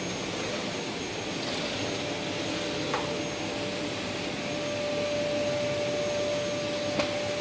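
A vacuum cleaner hums steadily nearby.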